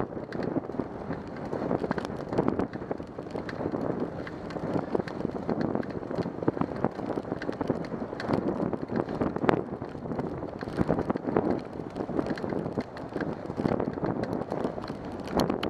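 Bicycle tyres roll steadily along a smooth path.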